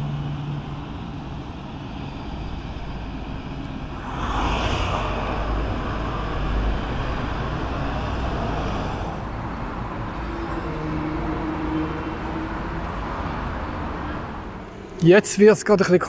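A river rushes and flows steadily below.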